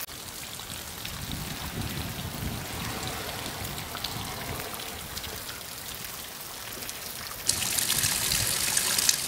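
Rain patters steadily on grass outdoors.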